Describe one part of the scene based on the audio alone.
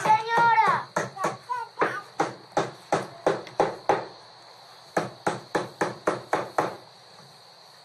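A man knocks rapidly on a wooden door.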